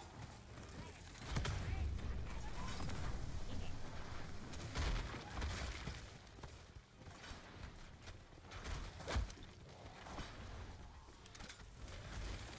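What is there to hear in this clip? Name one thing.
Gunshots crack sharply.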